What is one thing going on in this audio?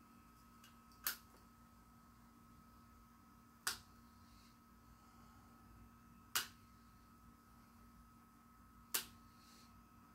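Pliers snip sharply, a few seconds apart.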